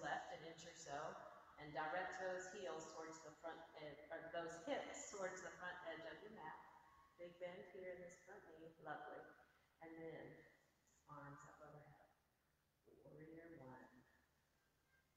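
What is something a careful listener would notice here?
A woman speaks calmly and clearly, guiding a workout, in a room with a slight echo.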